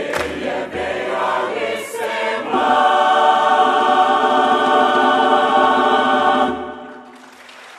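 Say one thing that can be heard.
A large mixed choir sings together in a big echoing hall and holds a final chord.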